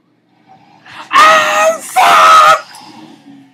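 A young man screams loudly into a close microphone.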